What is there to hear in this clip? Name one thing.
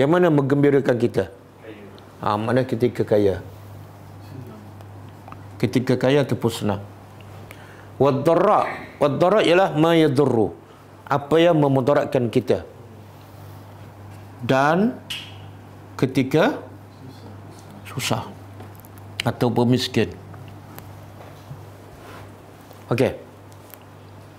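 An older man speaks calmly in short bursts with pauses, close to a microphone.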